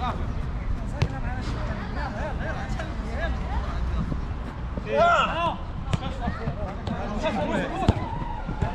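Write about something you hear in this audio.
A football thuds off a kick.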